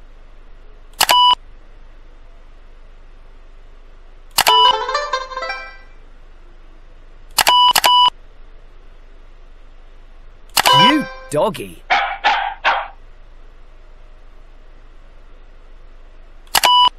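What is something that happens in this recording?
A bright electronic chime rings several times.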